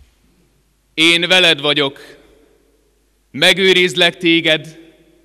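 A man speaks loudly and solemnly into a microphone in a large echoing hall.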